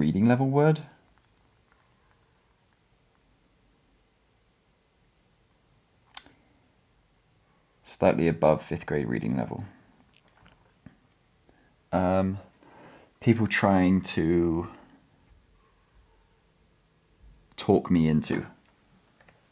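A young man talks calmly and close by, in short bursts.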